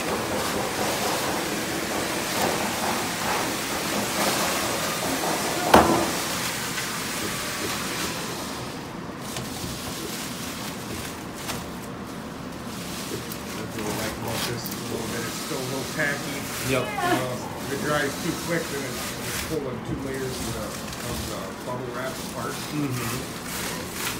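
Foil insulation crinkles and rustles close by.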